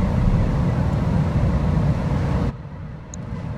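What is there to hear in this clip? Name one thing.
Wind and rain roar in a heavy storm.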